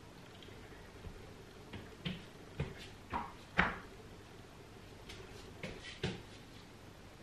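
Dumbbells knock and thud on a floor mat.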